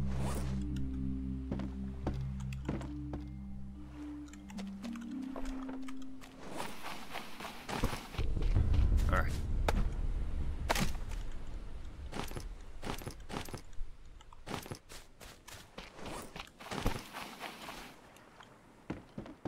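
Waves lap gently against a shore.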